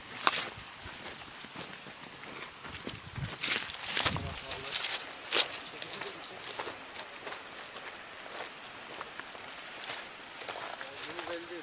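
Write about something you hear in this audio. Footsteps crunch on dry grass and stones outdoors.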